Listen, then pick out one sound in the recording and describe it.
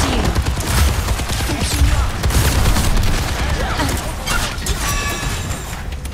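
Booming explosions and impacts thud heavily.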